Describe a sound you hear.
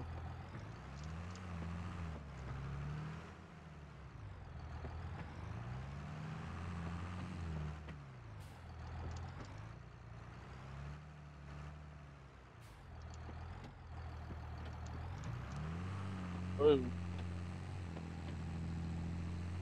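A tractor engine rumbles steadily, rising and falling in pitch.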